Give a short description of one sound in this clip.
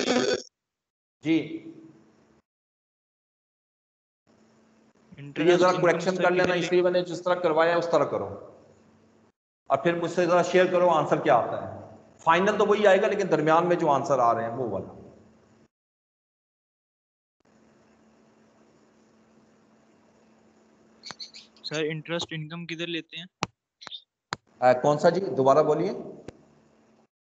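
A man speaks calmly through an online call microphone, pausing between phrases.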